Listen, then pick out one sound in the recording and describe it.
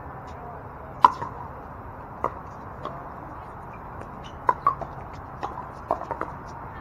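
Paddles sharply pop against a plastic ball.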